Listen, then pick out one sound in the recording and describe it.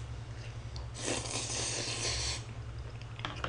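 A young man slurps noodles loudly, close by.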